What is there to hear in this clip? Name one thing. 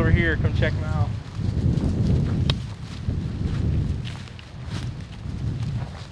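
Footsteps crunch through dry leaves and brush.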